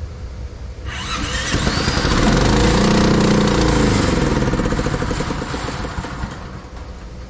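A small engine cranks, roars briefly and winds down.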